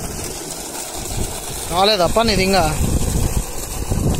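Water gushes from a pipe and splashes into a flooded field.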